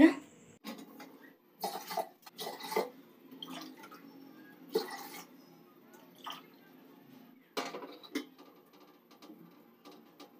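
Metal dishes clatter and clink.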